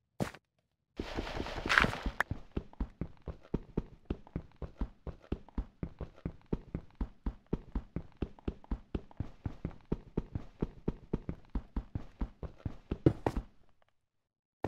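Blocks are broken with rapid, steady crunching taps.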